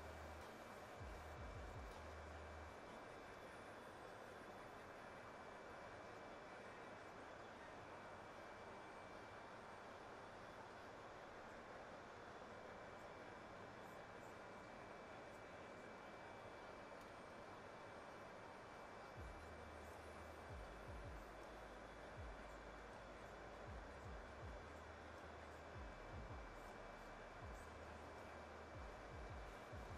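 A steady jet engine roar and air rush fill an aircraft cockpit.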